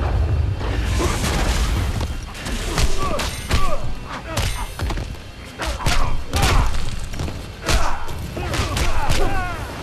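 Whooshing swings cut through the air.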